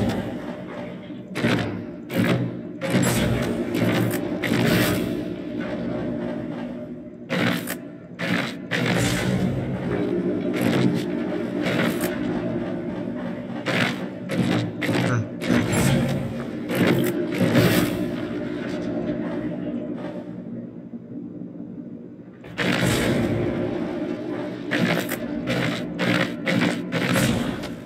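A metal mechanism clicks and grinds as it turns.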